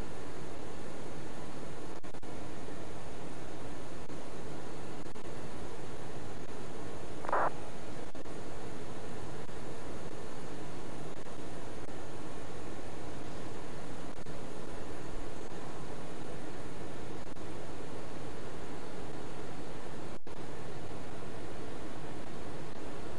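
A steady aircraft engine drone hums throughout.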